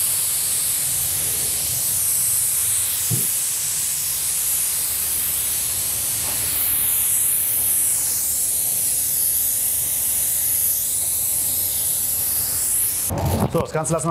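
A spray gun hisses steadily as paint is sprayed.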